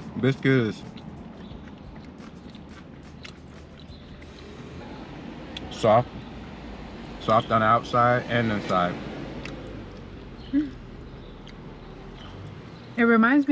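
A middle-aged man chews food with his mouth close to a microphone.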